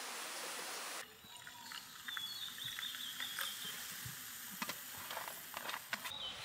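Soda fizzes and crackles in a metal cup.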